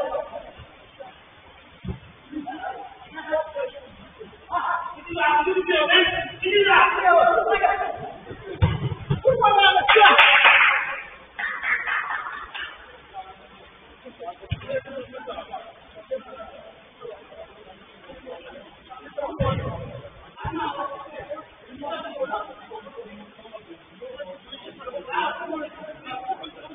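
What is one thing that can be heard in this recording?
Men shout to each other across an echoing pitch.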